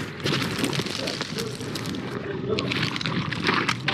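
A wet, fleshy squelching swells and fades.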